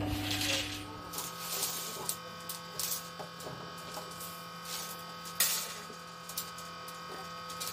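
A small engine runs with a steady hum.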